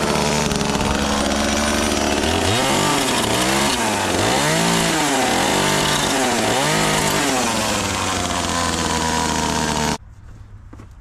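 A chainsaw engine roars loudly and revs up and down.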